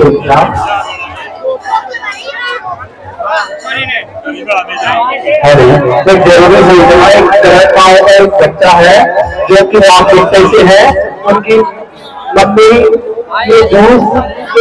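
A dense crowd chatters outdoors.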